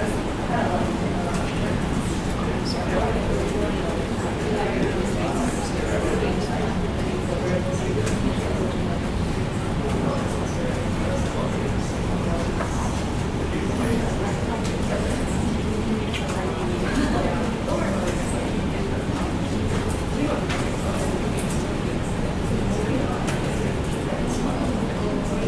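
A man speaks steadily into a microphone, heard through a loudspeaker.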